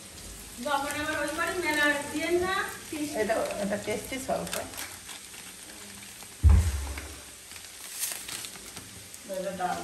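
A spatula scrapes and stirs rice in a pan.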